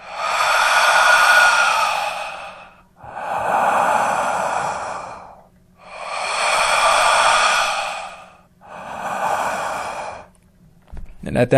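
A man breathes slowly and heavily in his sleep.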